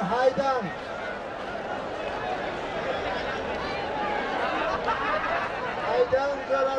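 A crowd of men talks and shouts outdoors.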